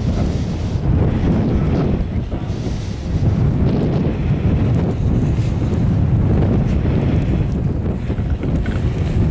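Wind buffets the microphone outdoors in a steady low rumble.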